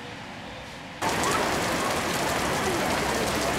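Heavy rain hisses loudly across an open outdoor space.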